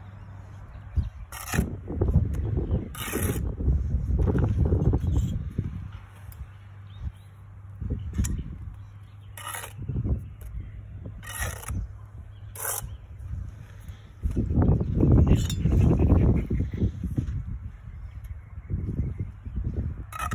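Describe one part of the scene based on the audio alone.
A trowel scrapes wet mortar.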